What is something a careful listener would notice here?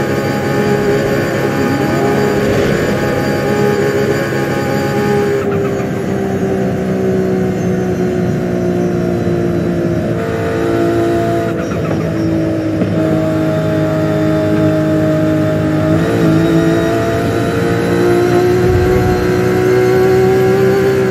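A car engine roars at high speed, dropping slightly in pitch and then climbing again.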